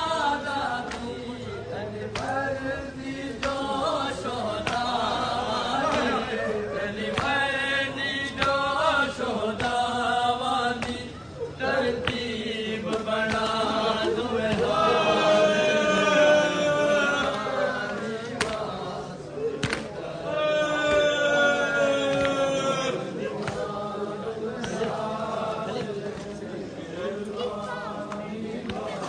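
Men beat their chests with their hands in a steady rhythm.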